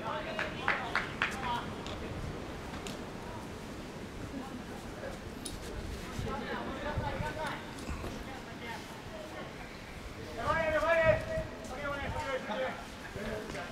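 Spectators nearby shout and call out loudly outdoors.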